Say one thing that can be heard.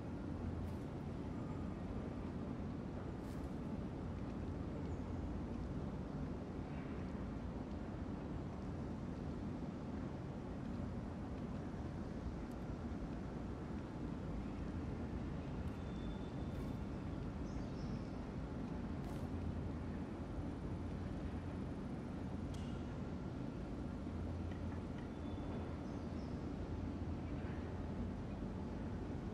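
A ceiling fan whirs with a steady low hum.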